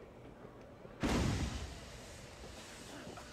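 A smoke bomb bursts with a loud hissing whoosh.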